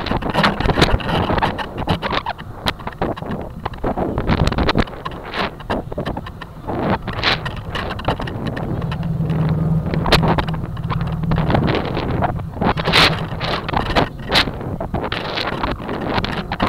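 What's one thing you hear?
Wind rushes and buffets loudly past a rocket as it tumbles through the air.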